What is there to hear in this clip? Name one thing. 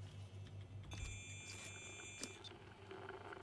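A handheld scanner crackles with static.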